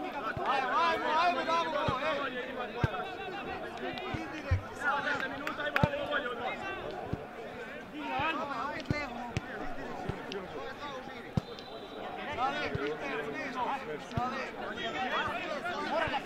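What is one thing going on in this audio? Young men shout and call out to each other outdoors across an open field.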